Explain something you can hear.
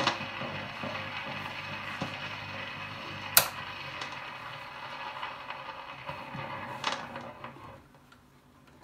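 A record player plays a crackly old record.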